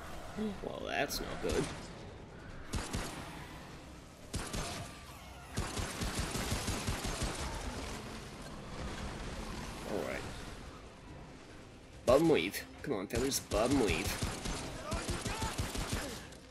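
A pistol fires repeated sharp shots.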